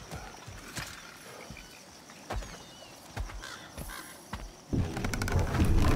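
A wooden boat creaks and thuds as someone climbs into it.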